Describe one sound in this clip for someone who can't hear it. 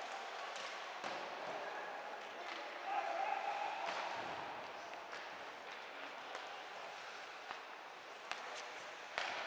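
Hockey sticks clack against the puck now and then.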